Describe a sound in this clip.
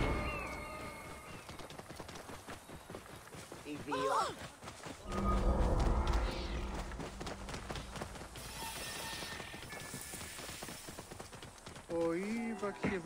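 Hooves thud steadily on dry ground as an animal is ridden along.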